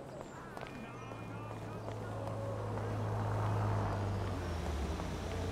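A truck engine rumbles closer and grows louder.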